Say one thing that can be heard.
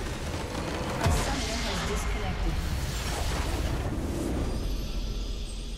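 A magical explosion bursts loudly and crackles away.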